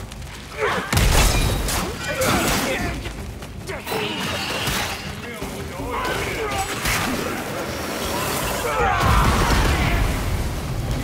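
A heavy impact booms with a deep rumble.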